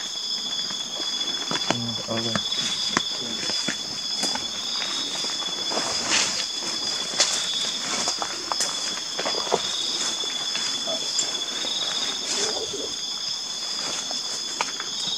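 Footsteps rustle and crunch through dry leaves.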